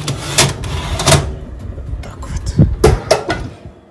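An oven door swings shut with a thud.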